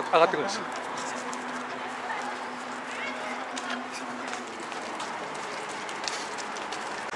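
Running footsteps patter on a walkway.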